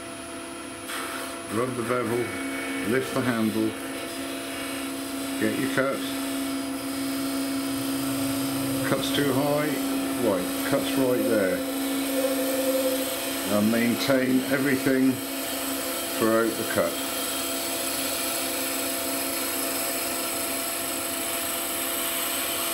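A lathe hums steadily.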